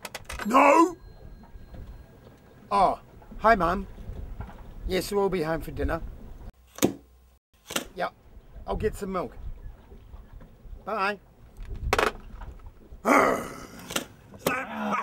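A man talks into a phone, calm and close.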